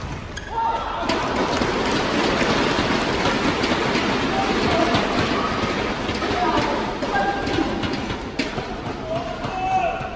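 A crowd cheers and applauds in a large echoing hall.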